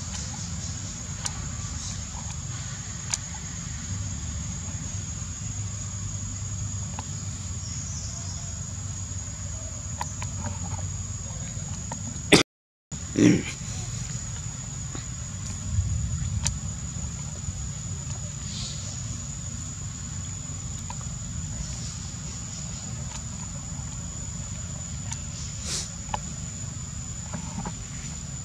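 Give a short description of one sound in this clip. A young macaque sucks and slurps through a plastic tube.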